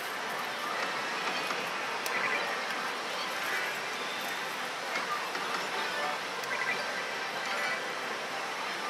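A slot machine plays bright electronic jingles and chimes.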